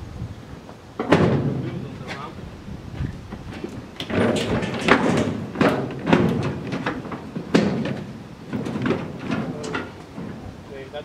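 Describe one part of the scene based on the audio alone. Metal clanks and bangs loudly.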